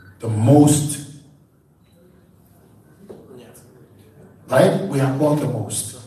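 A man speaks with animation through a microphone in a large echoing room.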